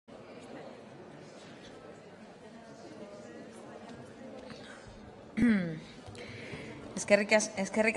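People murmur quietly in a large room.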